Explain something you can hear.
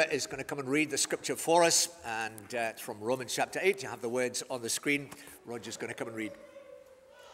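An older man speaks calmly into a microphone in an echoing hall.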